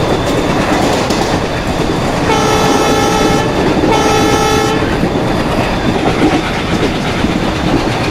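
A train rumbles and clatters steadily along the rails.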